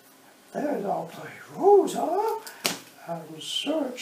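Cards are slapped down lightly on a cloth mat.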